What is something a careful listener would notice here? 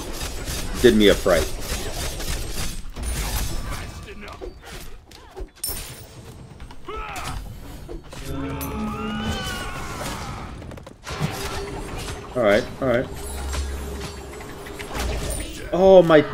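Game combat sounds clash and whoosh.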